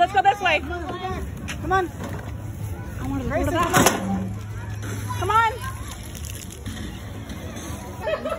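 Young children talk and squeal excitedly nearby.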